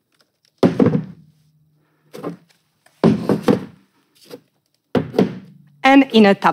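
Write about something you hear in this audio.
A laptop clicks and knocks as it is folded and set down.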